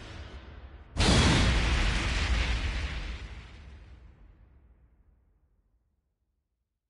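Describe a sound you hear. A loud blast booms and fades away.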